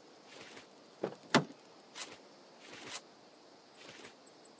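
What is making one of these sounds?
A car door clunks open.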